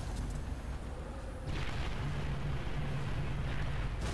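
Grenades explode with a hollow boom.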